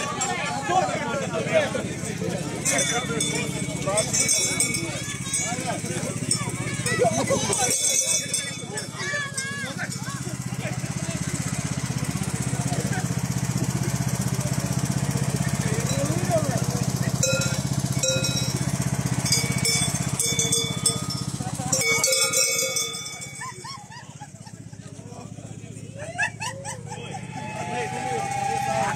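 Men and women chatter and talk nearby in a crowd outdoors.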